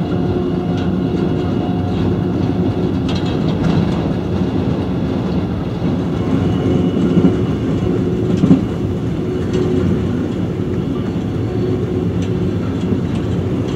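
A car's engine rumbles steadily from inside as it drives.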